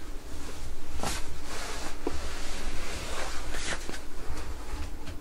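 Bedding rustles and crumples.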